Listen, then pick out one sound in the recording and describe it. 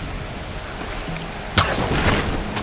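A bow string twangs as an arrow is shot.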